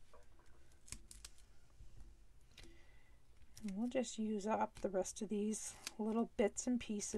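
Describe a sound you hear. Card stock rustles and taps softly as hands press and slide it.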